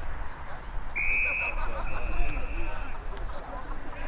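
A whistle blows sharply outdoors.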